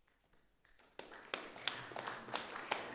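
A small chamber ensemble starts playing lively, accented music in a reverberant hall.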